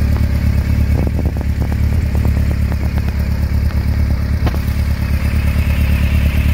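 A motorcycle engine idles with a deep, steady, throbbing rumble close by.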